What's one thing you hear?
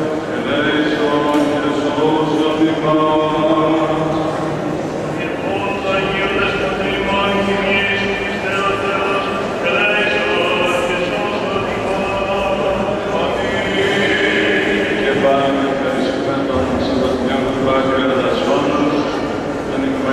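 A group of men chant together in a large echoing hall.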